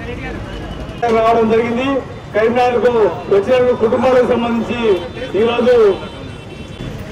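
A man speaks loudly and forcefully through a microphone and loudspeaker.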